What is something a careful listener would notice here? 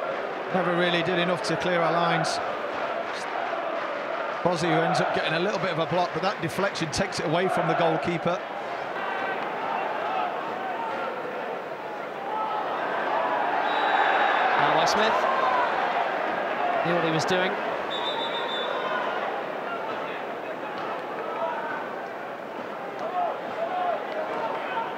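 A large stadium crowd roars and chants outdoors.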